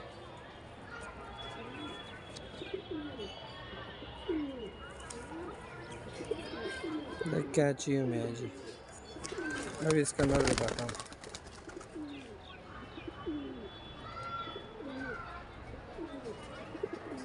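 Pigeons coo throughout.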